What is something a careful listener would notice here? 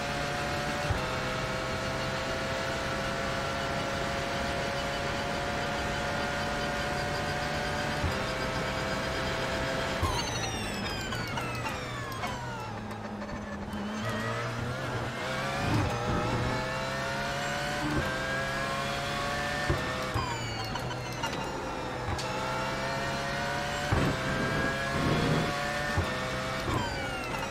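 A racing car engine roars at high revs, rising and falling in pitch.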